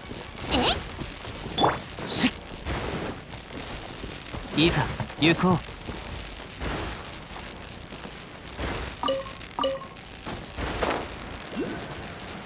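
Footsteps run over wooden planks and grass.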